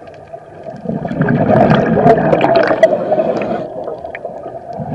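A diver's breath bubbles out and rumbles loudly underwater.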